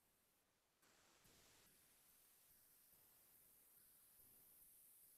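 A marker tip scratches softly on paper.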